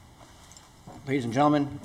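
A second man begins to speak into a microphone.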